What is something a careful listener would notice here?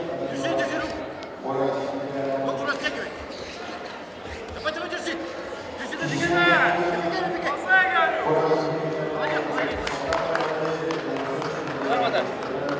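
Spectators shout and call out in a large echoing hall.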